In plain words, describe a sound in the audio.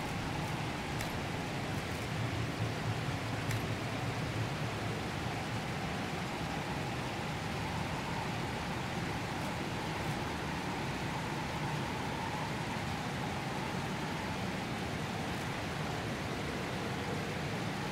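Soft menu clicks sound now and then as options are picked.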